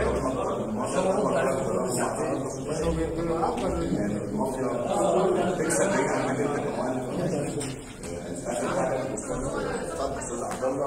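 A man speaks steadily into a microphone, heard through a loudspeaker in a large echoing hall.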